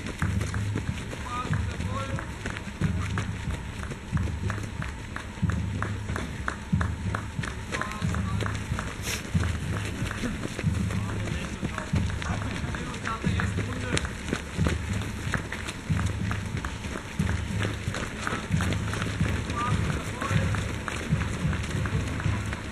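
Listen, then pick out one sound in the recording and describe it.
Runners' footsteps crunch and thud steadily on a gravel path close by.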